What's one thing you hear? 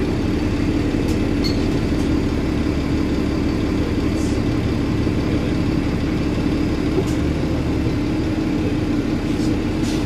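A bus engine hums steadily with a low drone while driving.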